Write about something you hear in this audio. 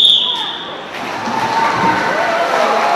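Swimmers dive into a pool with loud splashes in an echoing hall.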